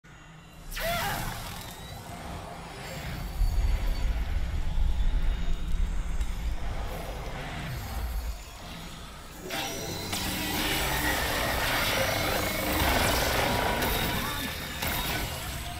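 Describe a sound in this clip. Magic energy blasts crackle and rumble in a game battle.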